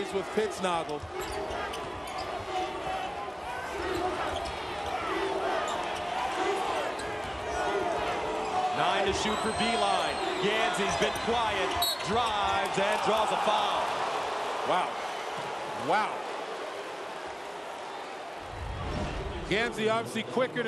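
A large crowd cheers and roars in a big echoing arena.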